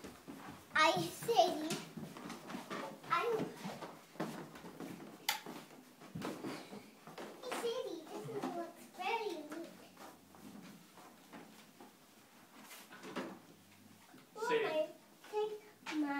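Young children talk and squeal excitedly close by.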